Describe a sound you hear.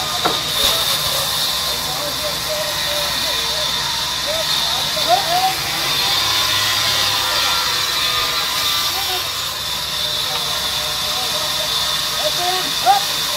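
Men call out to each other over the machine noise.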